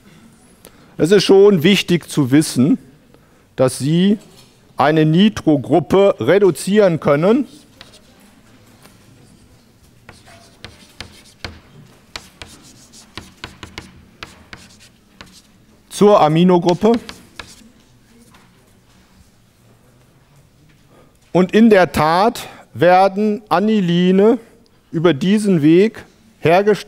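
A man lectures calmly into a microphone.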